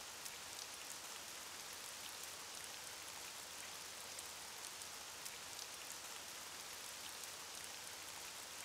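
Rain patters steadily against a window.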